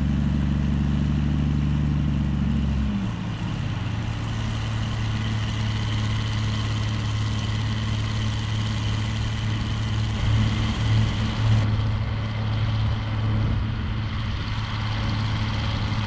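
A loaded trailer rattles as it rolls over bumpy ground.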